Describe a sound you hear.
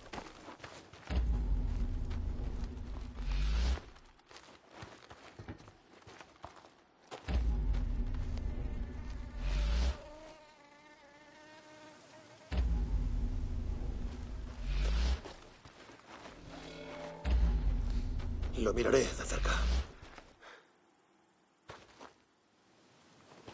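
Footsteps crunch on dry dirt and gravel.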